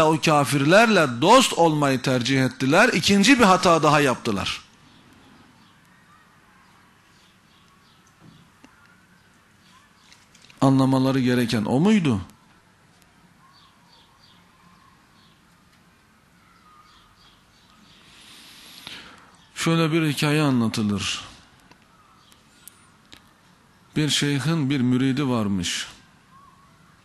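A man speaks with animation into a microphone, with long pauses between phrases.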